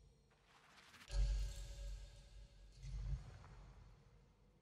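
A deep magical swell rumbles as a skill is unlocked.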